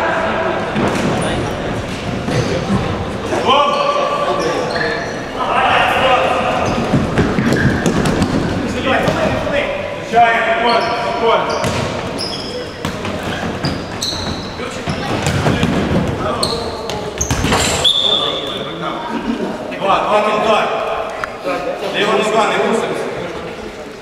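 A ball is kicked with hard thuds.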